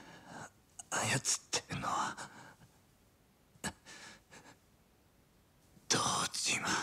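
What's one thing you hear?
A wounded young man groans in pain.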